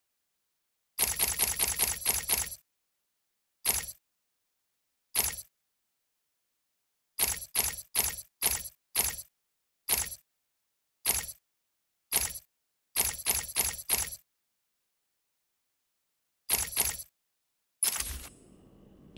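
Sharp menu clicks sound in quick bursts.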